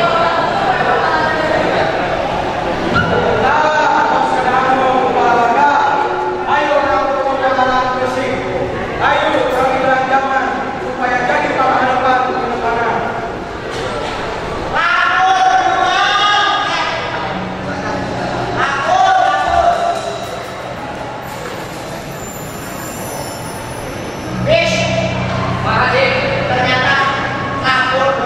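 Young people sing together through a loudspeaker in a large echoing hall.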